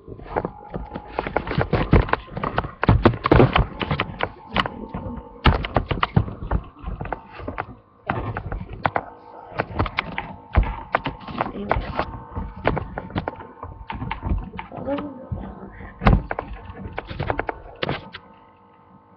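A microphone knocks and rustles loudly as it is handled.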